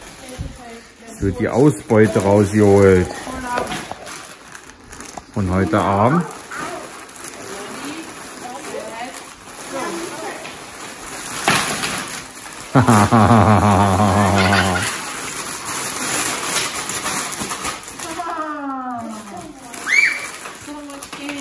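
Wrapping paper and plastic wrappers rustle and crinkle.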